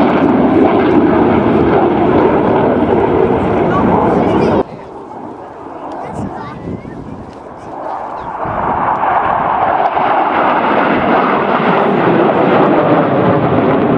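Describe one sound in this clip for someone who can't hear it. Jet engines roar loudly overhead, with a quieter lull in between.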